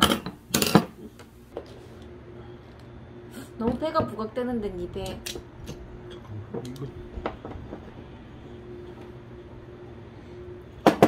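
Hard plastic parts click and snap together up close.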